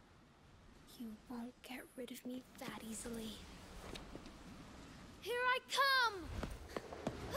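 A young girl speaks defiantly, close by.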